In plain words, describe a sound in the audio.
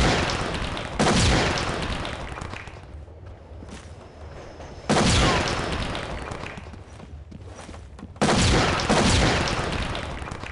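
Smoke grenades burst with a loud hiss, each hiss slowly fading.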